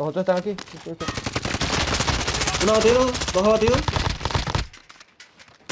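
An automatic gun fires in rapid bursts.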